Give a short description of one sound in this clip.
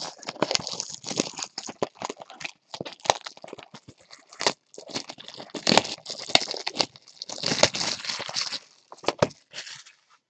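Plastic wrapping crinkles and rustles under handling fingers.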